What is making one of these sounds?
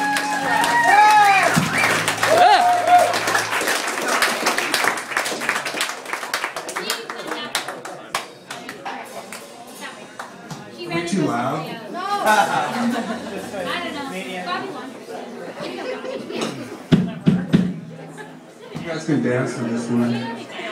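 A drum kit is played with crashing cymbals and steady beats.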